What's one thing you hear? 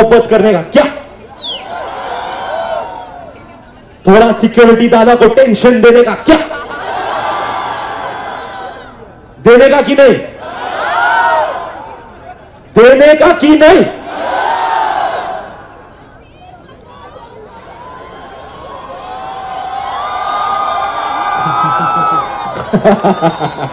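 A large crowd cheers and screams in answer.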